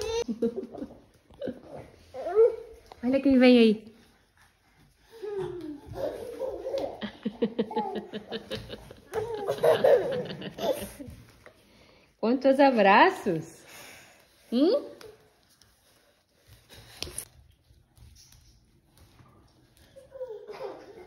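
Young toddlers squeal and babble excitedly.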